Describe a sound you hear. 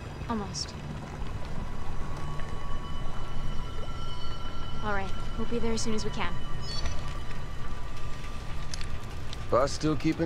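A young woman speaks calmly on a phone, close by.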